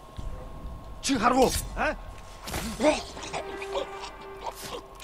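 A blade strikes and stabs with sharp, quick thuds.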